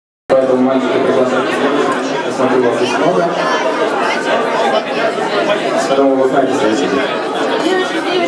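A man sings into a microphone through loudspeakers.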